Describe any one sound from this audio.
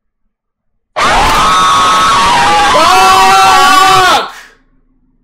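A young man screams loudly and shrilly into a microphone.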